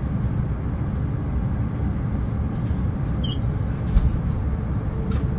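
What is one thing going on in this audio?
An electric express train rumbles along at speed, heard from inside the train.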